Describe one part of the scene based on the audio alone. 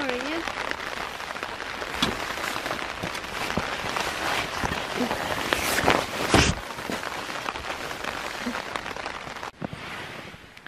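Wind blows and buffets against the microphone outdoors.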